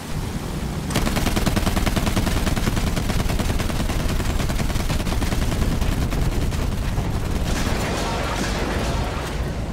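Explosions boom and roar with fire.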